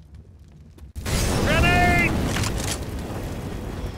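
A bottle smashes and bursts into roaring flames.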